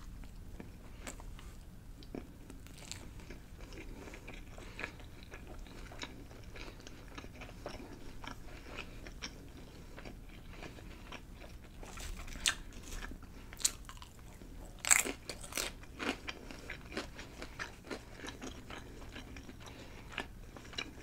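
A woman chews food wetly and close up.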